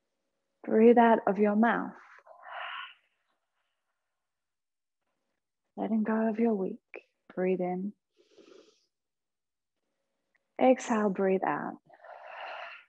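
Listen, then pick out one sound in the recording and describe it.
A woman speaks calmly and softly, with long pauses, close to a microphone.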